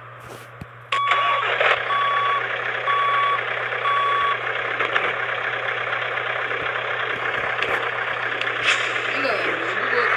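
A truck engine idles with a steady rumble.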